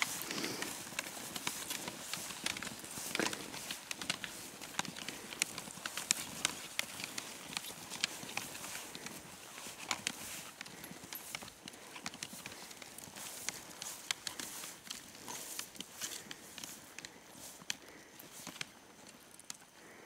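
Snowshoes crunch on deep snow with steady footsteps.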